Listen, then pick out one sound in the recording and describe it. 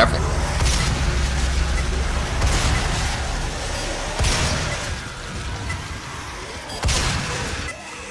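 Barrels explode with heavy booms.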